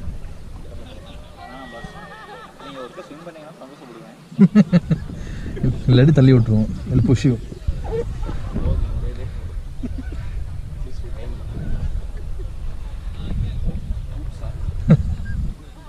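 Young men talk and laugh together close by, outdoors.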